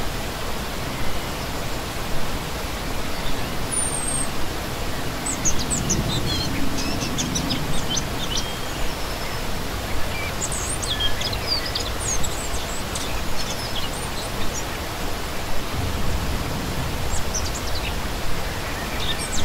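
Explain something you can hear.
A shallow stream splashes and babbles steadily over rocks close by.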